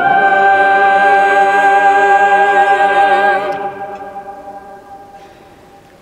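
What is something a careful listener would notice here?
An organ holds a chord in a large echoing hall, then stops and rings away.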